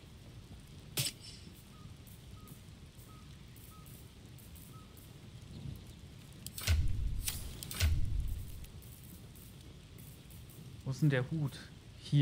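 Game menu sounds click and chime as items are moved.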